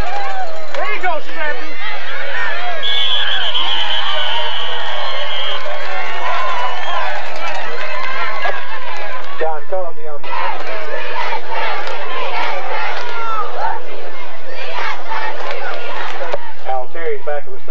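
A crowd of spectators talks and shouts outdoors.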